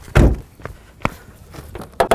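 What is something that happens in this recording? A car hood latch clicks open.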